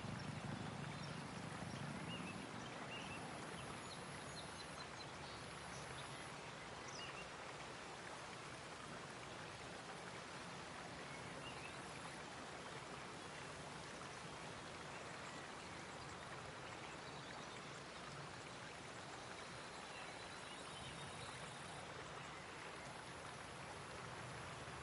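Water trickles gently in a shallow stream.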